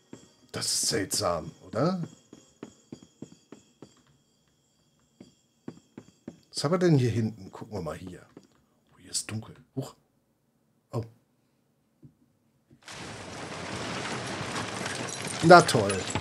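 An older man talks with animation, close to a microphone.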